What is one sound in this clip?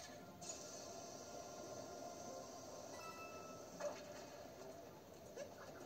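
Video game music and effects play through a television speaker.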